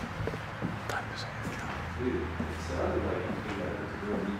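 A middle-aged man speaks quietly close by.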